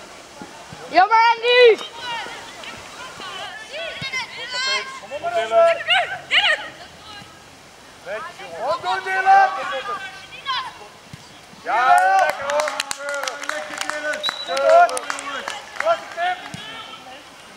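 Young girls shout and cheer loudly outdoors.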